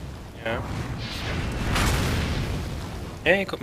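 A heavy blast booms and rumbles.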